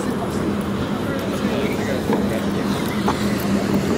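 Footsteps tap on a wooden walkway.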